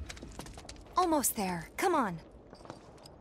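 A young woman calls out urgently.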